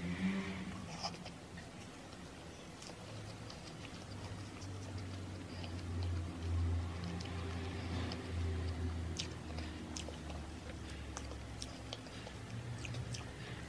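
A young woman chews and smacks softly, close to a microphone.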